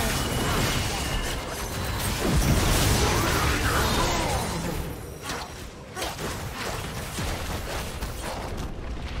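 Game spell effects whoosh, crackle and clash in a busy fight.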